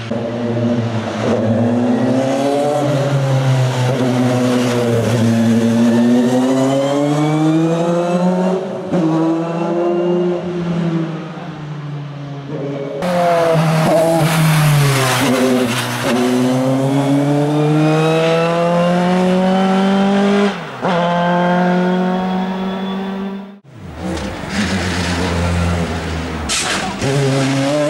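A race car engine roars loudly, rising and falling in pitch as it shifts gears.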